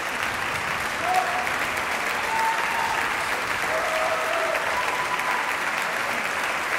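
Audience members cheer and whistle.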